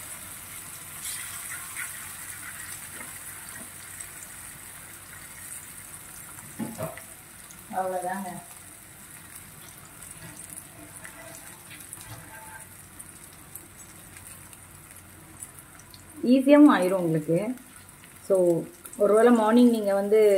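Oil sizzles steadily in a hot pan.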